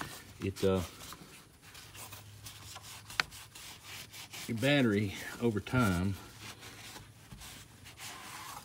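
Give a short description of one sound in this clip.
A cloth rubs softly against a hard surface.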